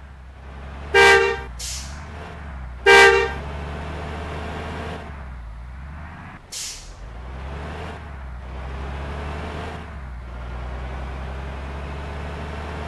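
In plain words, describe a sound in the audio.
A bus engine hums steadily as the bus drives.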